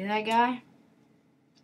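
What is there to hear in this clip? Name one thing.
A young boy speaks briefly and excitedly close to a microphone.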